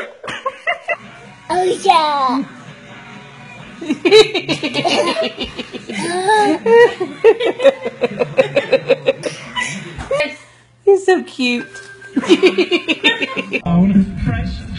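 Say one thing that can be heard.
A baby babbles and squeals loudly close by.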